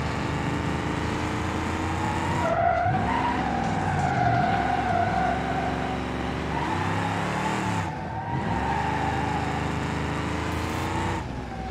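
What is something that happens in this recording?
A car engine revs, rising and falling in pitch.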